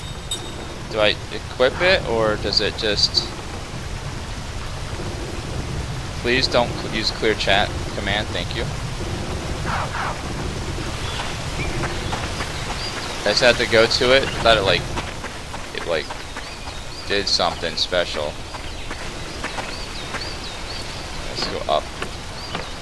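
A man talks casually into a close microphone, in short bursts.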